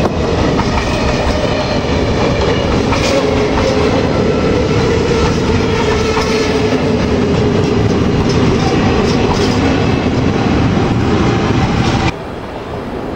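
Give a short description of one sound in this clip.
A passing train rumbles loudly and clatters over the rail joints.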